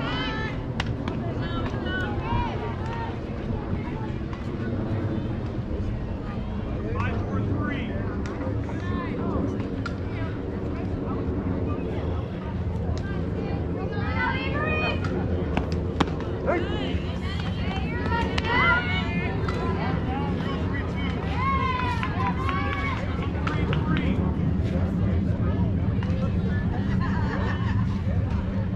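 Young players shout and call out across an open field.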